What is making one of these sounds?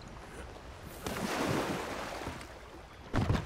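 A body splashes into the water beside a boat.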